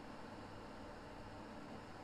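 A large fan whirs with a steady, low hum.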